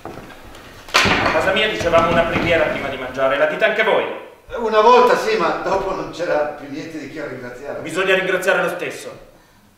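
A young man speaks loudly and with animation.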